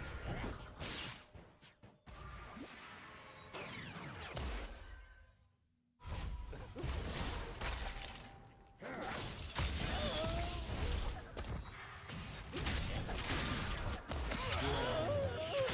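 Game spell effects whoosh, zap and crackle during a fight.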